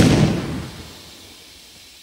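A loud blast booms and fades away.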